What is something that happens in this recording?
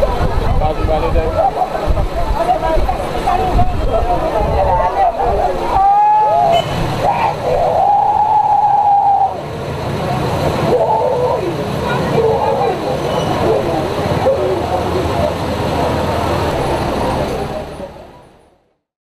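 A crowd shouts and clamours outdoors close by.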